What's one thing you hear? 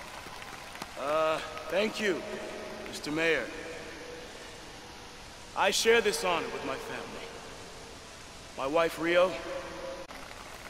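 A man speaks slowly through a microphone and loudspeaker.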